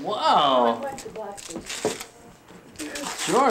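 Gift paper rustles and crinkles.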